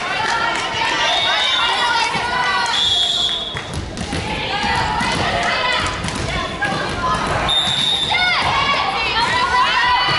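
A volleyball is struck with a dull slap.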